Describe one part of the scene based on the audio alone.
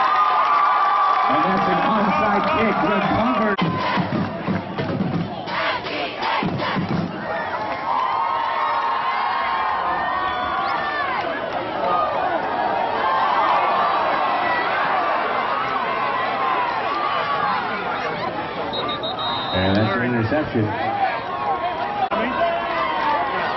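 A crowd cheers and shouts across an open field.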